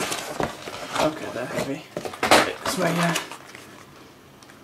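A plastic blister pack crinkles and clacks in hands.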